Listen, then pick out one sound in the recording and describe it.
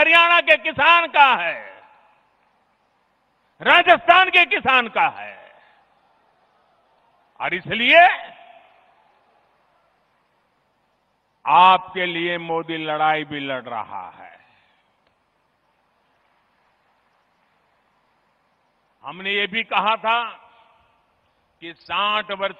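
An elderly man speaks forcefully into a microphone over loudspeakers.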